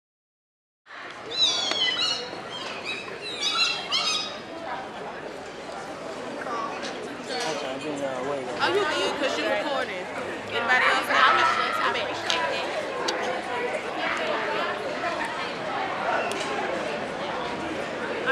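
Hands clap in a rhythm.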